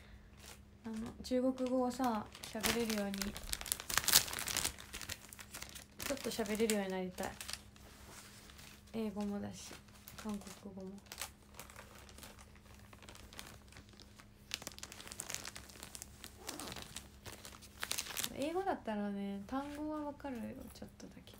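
A young woman speaks softly and casually, close to a microphone, with pauses.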